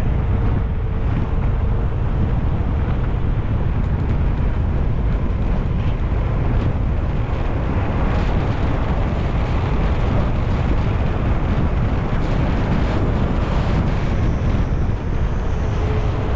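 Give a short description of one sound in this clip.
Wind roars loudly over the microphone.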